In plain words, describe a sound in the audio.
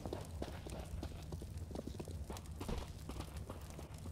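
Gunshots crack in quick bursts some distance away.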